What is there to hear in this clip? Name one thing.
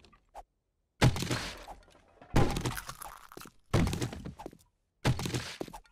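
A heavy axe strikes and smashes something again and again.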